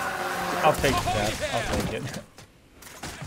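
Gunfire bursts out in a video game.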